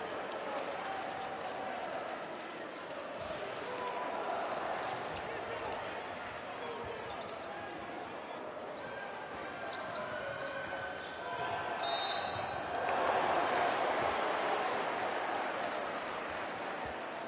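A crowd cheers and chants loudly in a large echoing arena.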